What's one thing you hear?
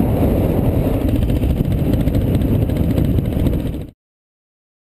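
A motorcycle engine runs.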